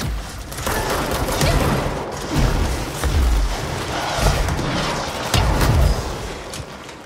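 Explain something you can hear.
A loud explosion booms and debris scatters.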